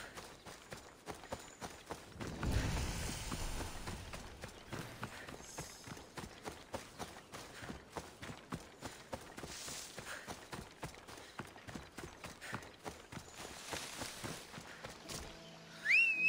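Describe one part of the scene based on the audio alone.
Footsteps run quickly through grass and over dirt.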